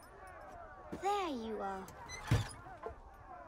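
A young girl speaks softly and close by.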